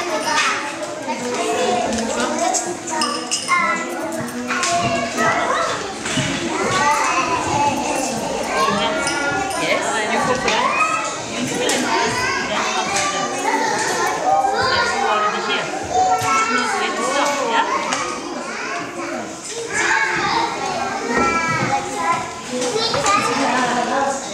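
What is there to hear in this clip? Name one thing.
Plastic toy dishes clink and clatter softly.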